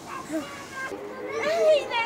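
A woman speaks gently to a small child.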